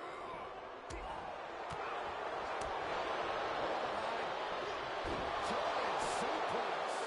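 Heavy thuds of bodies slamming onto a wrestling mat ring out now and then.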